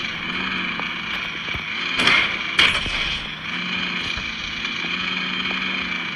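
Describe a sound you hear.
A tank engine hums steadily.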